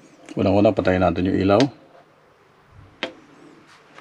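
A button clicks as a finger presses it.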